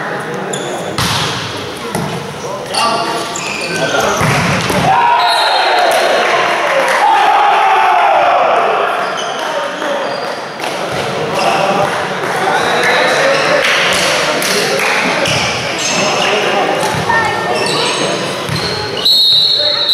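A volleyball is struck with sharp slaps in an echoing hall.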